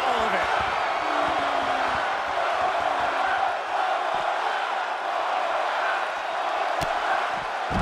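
A crowd cheers steadily throughout.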